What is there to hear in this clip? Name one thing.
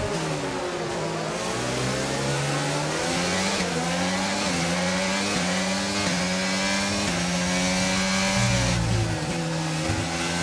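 A racing car engine screams at high revs, rising in pitch and dropping sharply with each gear change.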